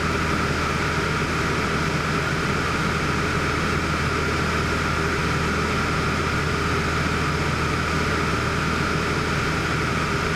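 An aircraft engine drones steadily from inside the cabin.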